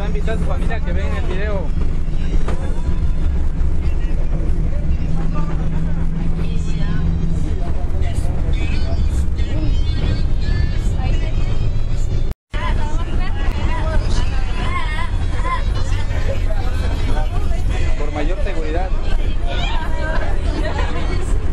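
Young men and women chatter and talk nearby.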